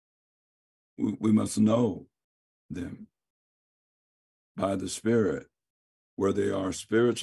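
A middle-aged man speaks calmly over an online call, in short phrases with pauses.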